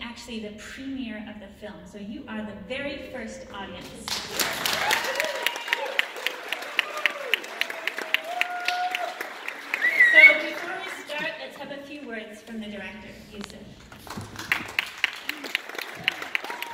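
A young woman speaks calmly into a microphone, heard through loudspeakers in a large echoing hall.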